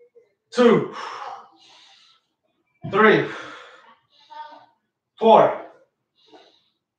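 A man grunts loudly with effort in short bursts nearby.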